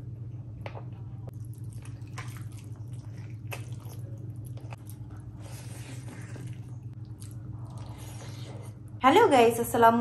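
A woman chews and smacks her lips while eating, close to a microphone.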